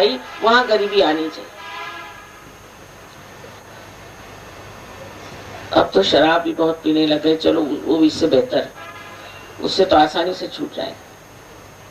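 An elderly woman speaks calmly into a microphone, with pauses.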